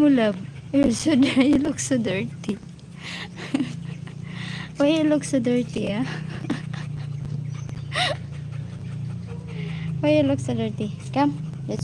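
A dog pants close by.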